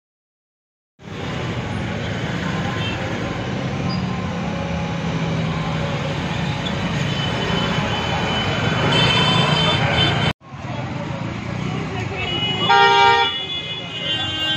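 A busy street bustles with passing traffic and people.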